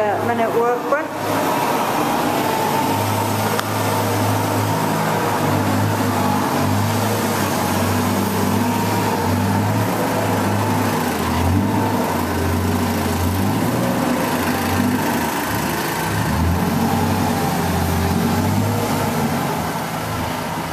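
A heavy diesel engine idles nearby with a steady low rumble.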